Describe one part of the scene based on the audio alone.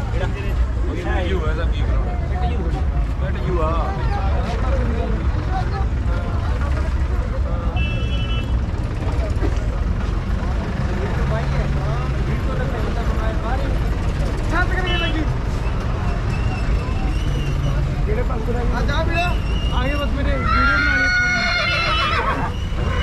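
A crowd of men chatter outdoors nearby.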